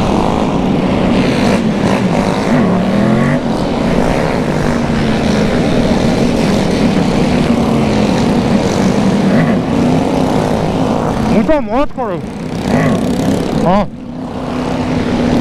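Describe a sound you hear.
Other motorcycles rev nearby.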